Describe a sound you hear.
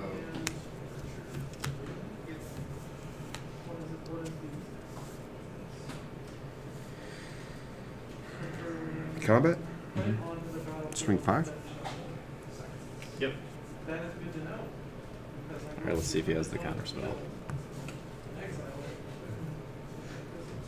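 Playing cards tap and slide softly on a table mat.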